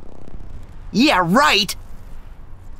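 A young man answers briefly.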